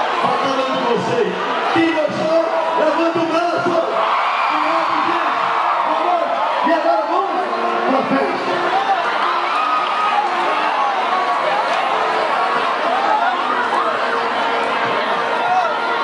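A man shouts to the crowd through a loudspeaker.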